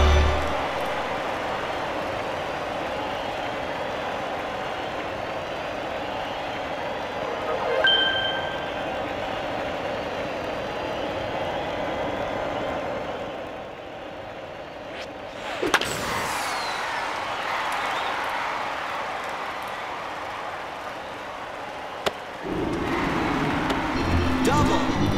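A stadium crowd murmurs and cheers.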